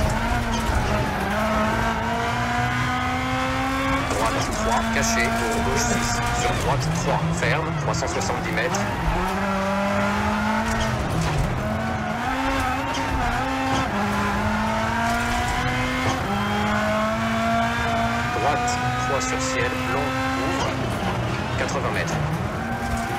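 A rally car engine revs hard, rising in pitch and dropping with each gear change.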